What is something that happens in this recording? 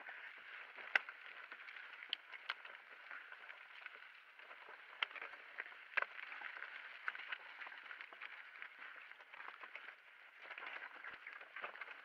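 Bike parts rattle and clatter over bumps.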